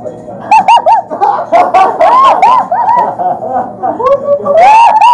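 A young man shouts and laughs excitedly close by.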